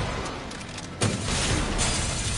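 A gunshot booms loudly.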